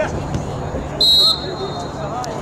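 A referee's whistle blows a short sharp blast.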